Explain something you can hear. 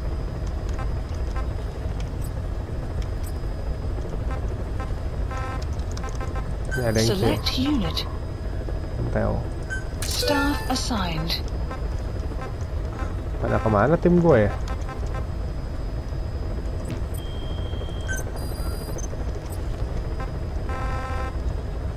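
Short electronic menu beeps and clicks sound repeatedly.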